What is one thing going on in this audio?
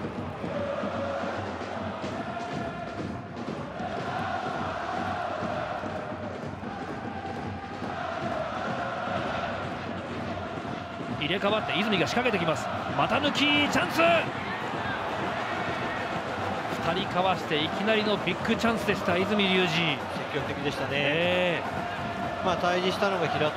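A large stadium crowd chants and sings steadily.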